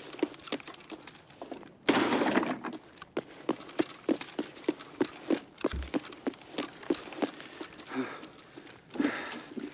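Footsteps thud on a hard floor at a steady walking pace.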